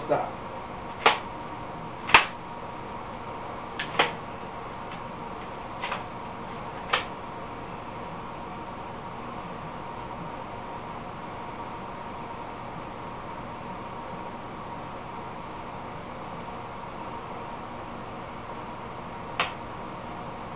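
A rifle's parts click and clack as a man handles it.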